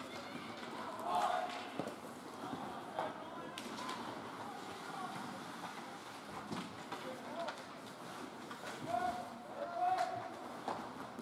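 Young hockey players shout across the rink.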